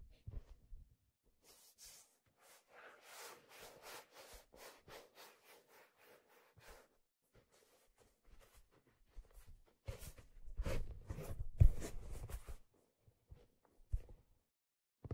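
Fingers tap and scratch on a hollow plastic shell close to a microphone.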